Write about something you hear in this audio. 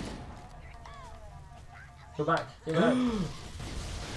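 Energy weapons fire in quick bursts.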